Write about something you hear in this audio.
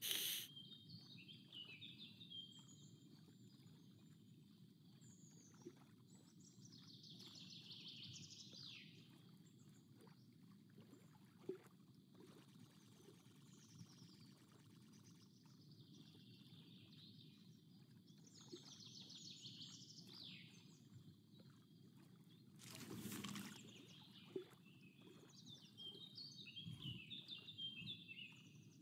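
Water laps and ripples gently.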